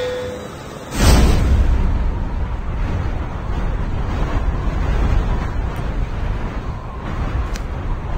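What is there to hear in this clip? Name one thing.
Wind rushes loudly.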